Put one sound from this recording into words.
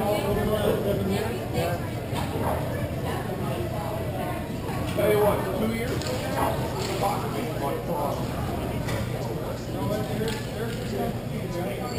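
Young men call out to each other from across the rink.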